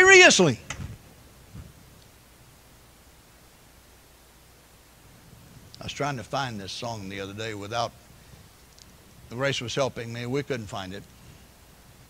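An elderly man speaks calmly into a microphone, with pauses.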